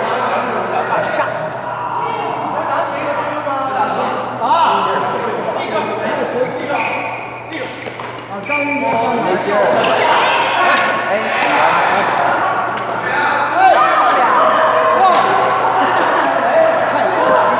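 Men talk and laugh nearby in a large echoing hall.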